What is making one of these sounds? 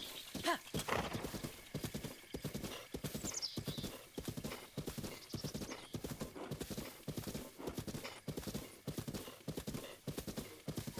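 A horse's hooves pound rapidly on soft ground as it gallops.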